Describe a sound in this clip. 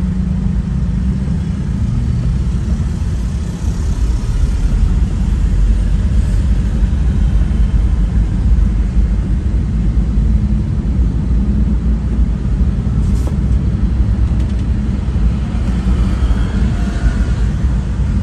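Traffic rumbles along a city street.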